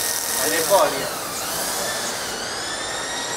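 A fiber laser cutting head hisses as it cuts through steel plate.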